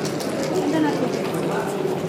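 A game clock button clicks.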